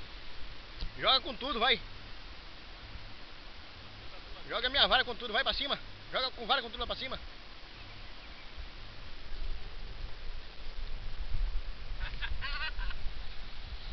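A man talks excitedly nearby.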